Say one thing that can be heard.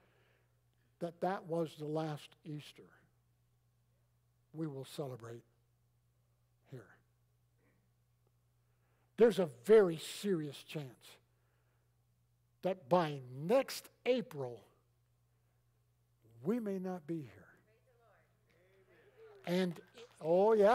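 An elderly man speaks with animation through a microphone, pausing between phrases.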